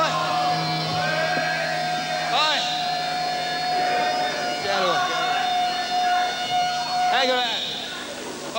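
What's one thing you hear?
A band plays loud music with electronic swooping sounds.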